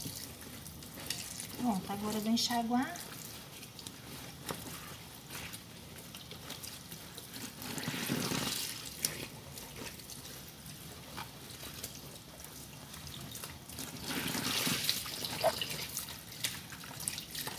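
Water sloshes in a tub.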